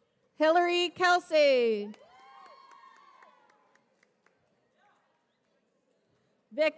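A young woman whoops and cheers loudly in a large echoing hall.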